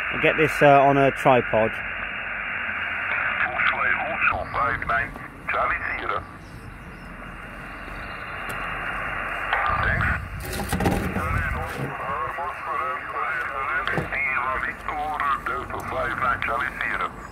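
A man talks over a crackly radio loudspeaker.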